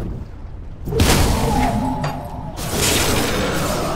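A crackling electric spell zaps in a game.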